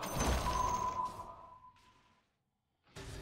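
Game sound effects ring out in a burst of clashing, chiming sounds that fade away.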